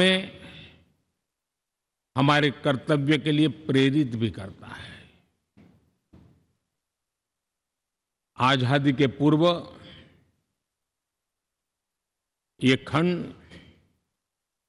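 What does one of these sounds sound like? An elderly man gives a speech into a microphone, speaking slowly and firmly with long pauses.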